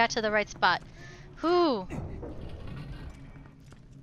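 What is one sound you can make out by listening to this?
A heavy stone door slides open with a low rumble.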